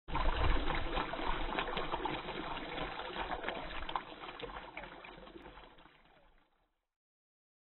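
Water pours steadily from a spout and splashes into a stone basin.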